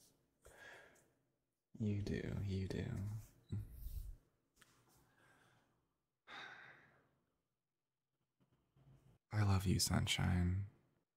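A young man speaks softly and tenderly, close to the microphone.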